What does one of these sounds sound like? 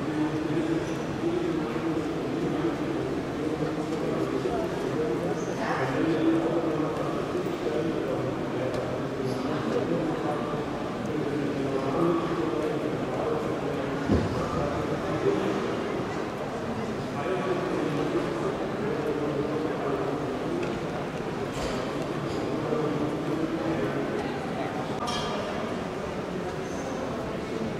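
A crowd murmurs all around in a large echoing hall.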